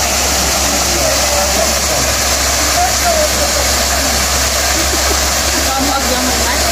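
A waterfall rushes steadily.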